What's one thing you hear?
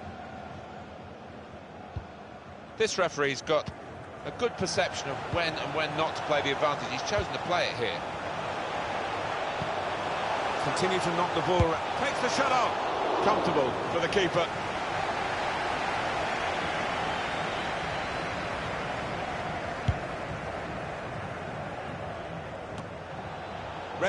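A large stadium crowd roars steadily, swelling and then slowly settling.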